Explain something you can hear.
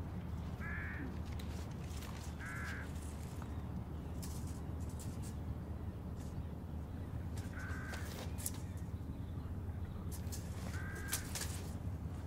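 A man's footsteps tap on a paved path outdoors.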